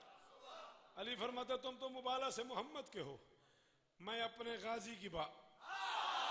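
A man speaks passionately into a microphone in an echoing hall.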